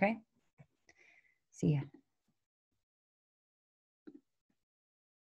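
A woman speaks calmly and close to a microphone, in short bursts.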